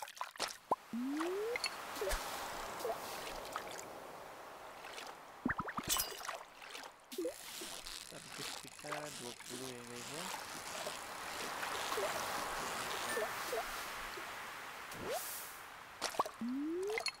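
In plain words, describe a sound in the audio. A fishing line whirs out with a rising tone as it is cast.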